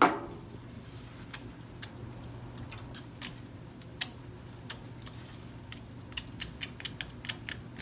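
A metal tool scrapes and picks at hard plaster in short scratches.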